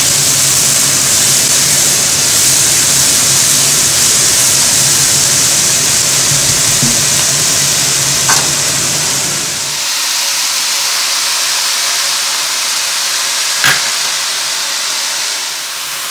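A spatula scrapes and stirs food in a pot.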